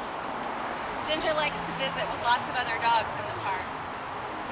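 A young woman talks brightly nearby.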